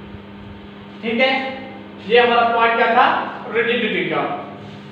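A man speaks clearly, like a teacher explaining.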